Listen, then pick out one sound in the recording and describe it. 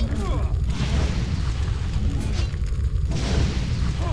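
A fiery blast bursts and crackles.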